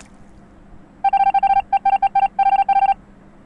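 Rapid electronic beeps chatter as text types out.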